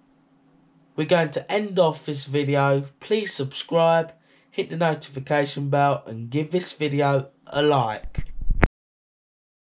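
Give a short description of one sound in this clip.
A teenage boy talks close to the microphone with animation.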